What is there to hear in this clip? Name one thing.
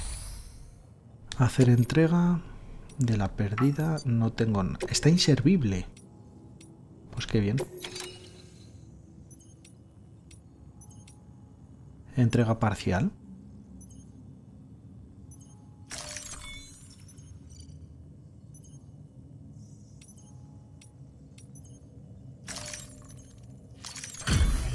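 Soft electronic blips and chimes sound as menu choices change.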